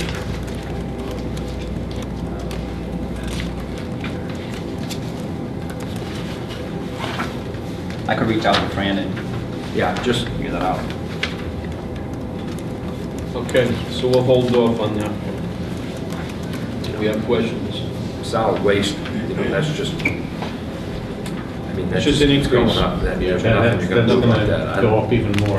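Fingers tap on a laptop keyboard nearby.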